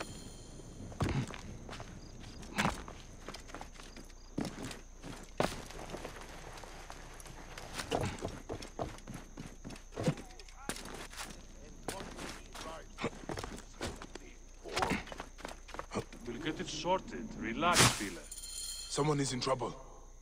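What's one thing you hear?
Footsteps thud and scuff on stone and wooden roofs as someone runs and climbs.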